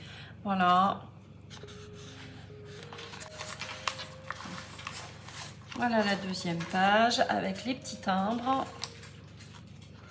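Stiff paper pages rustle as they are turned.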